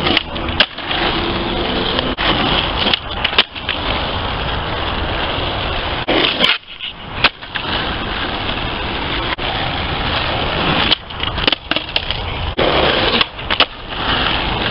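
A skateboard deck clacks and slaps against the ground.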